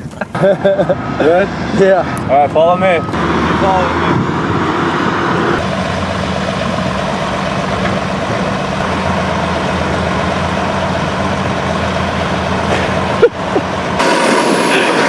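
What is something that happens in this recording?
A large excavator engine rumbles steadily nearby.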